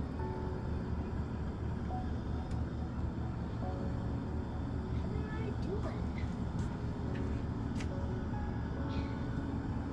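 Oil pours and sizzles in a hot pan.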